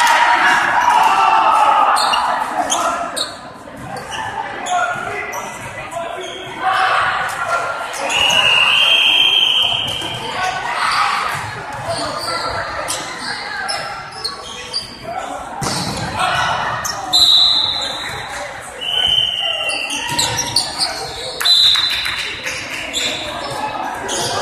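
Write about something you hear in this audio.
Young men call out and chatter in a large echoing gym.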